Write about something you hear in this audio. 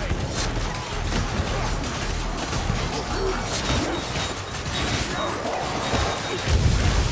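Weapons strike and hack into enemies in quick, repeated blows.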